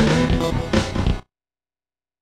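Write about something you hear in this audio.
Chiptune video game music plays, then cuts off abruptly.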